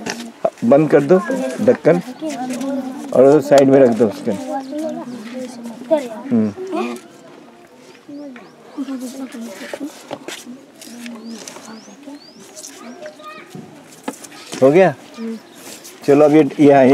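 Several men talk loudly nearby, their voices overlapping.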